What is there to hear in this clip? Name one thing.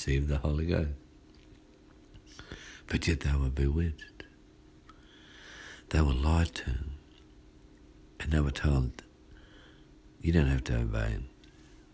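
A man speaks in short bursts close by, with pauses between.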